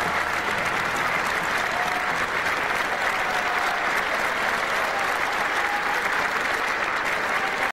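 A man strums an acoustic guitar.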